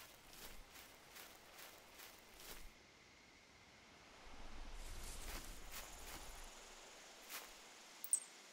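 Footsteps rustle through dense grass and ferns.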